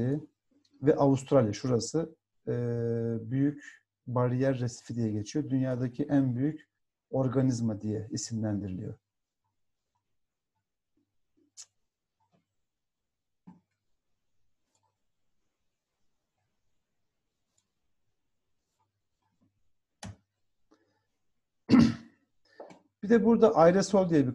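A middle-aged man speaks calmly into a microphone, as if on an online call, with pauses.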